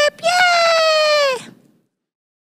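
A high, cartoonish voice sings a long drawn-out note close to the microphone.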